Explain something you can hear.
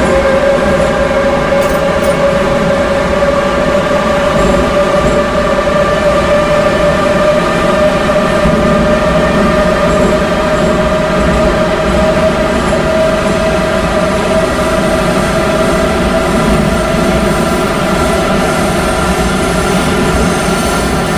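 A train rumbles along the rails through a tunnel.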